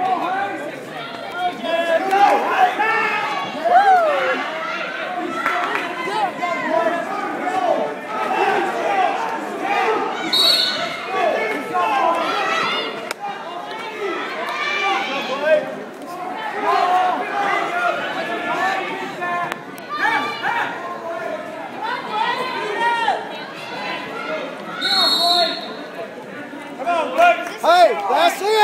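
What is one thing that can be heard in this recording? A crowd shouts and cheers in an echoing gymnasium.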